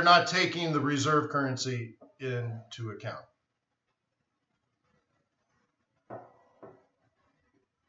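A middle-aged man speaks calmly into a microphone, heard through an online stream.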